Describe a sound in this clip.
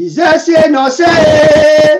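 A man sings a long held note over an online call.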